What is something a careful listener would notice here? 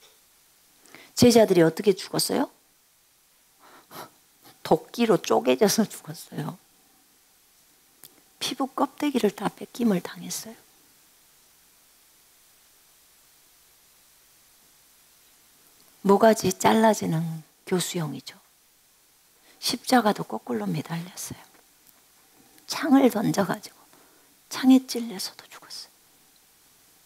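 A middle-aged woman speaks expressively into a microphone, in short phrases with pauses.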